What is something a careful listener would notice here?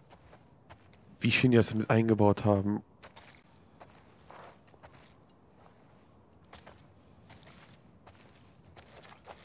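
Footsteps tread slowly on a hard floor.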